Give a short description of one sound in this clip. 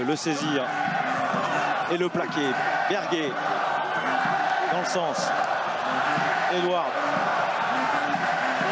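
A large crowd murmurs and cheers steadily outdoors.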